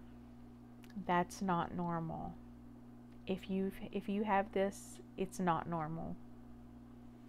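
A woman speaks with animation, close to the microphone.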